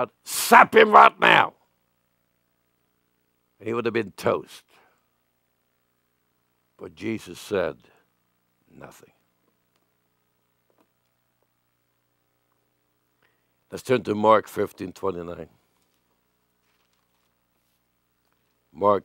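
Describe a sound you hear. An elderly man preaches emphatically into a microphone, in short phrases with long pauses.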